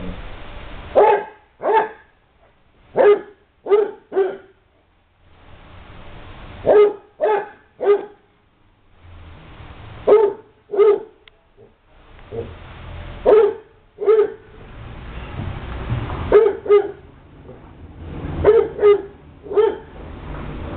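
A dog barks in short, loud bursts outdoors.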